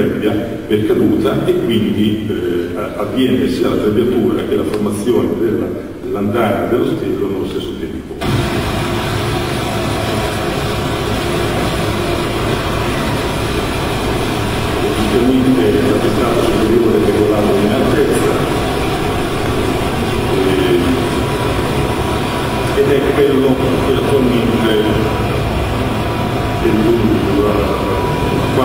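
A man speaks steadily into a microphone in a large echoing hall.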